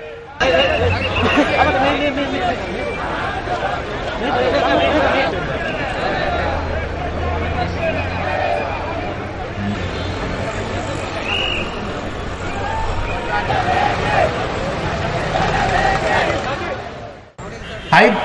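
A crowd chatters and shouts all around outdoors.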